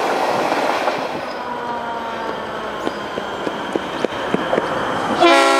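A diesel locomotive rumbles as it approaches.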